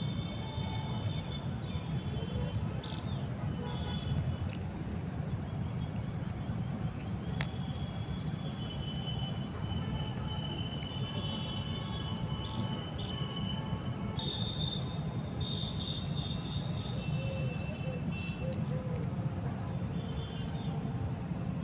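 Plastic buckles click and rattle as hands fiddle with a strap.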